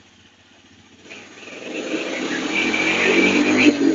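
A single-cylinder four-stroke three-wheeler pulls away and accelerates.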